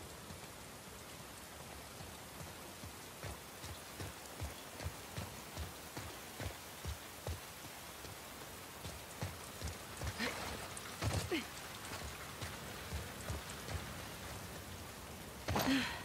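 Boots run steadily over wet ground and grass.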